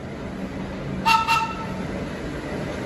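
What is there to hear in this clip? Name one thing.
A subway train sounds its horn.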